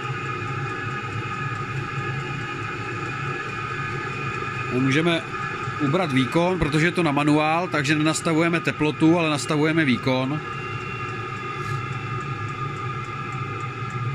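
An electric fan heater hums steadily close by.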